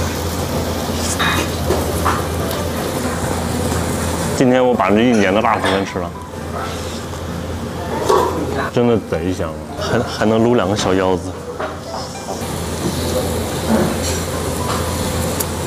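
A young man chews and smacks his lips while eating.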